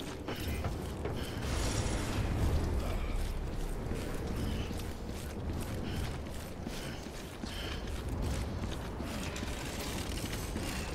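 Heavy footsteps crunch steadily on hard ground.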